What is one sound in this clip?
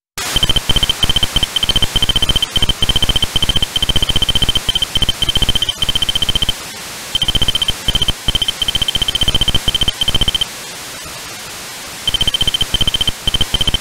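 Rapid electronic blips chirp as game text prints out, in bursts with short pauses.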